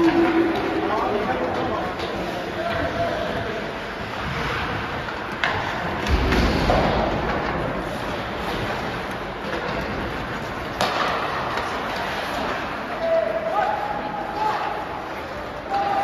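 Skate blades scrape and hiss across the ice in a large echoing rink.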